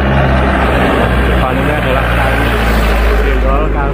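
A truck engine rumbles as the truck drives past close by.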